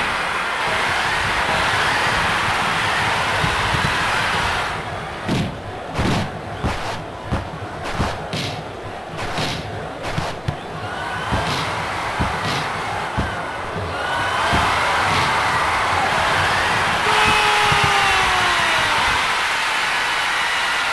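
A stadium crowd roars in a video game.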